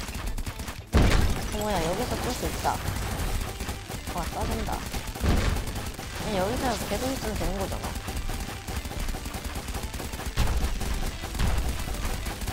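Gunfire booms in bursts.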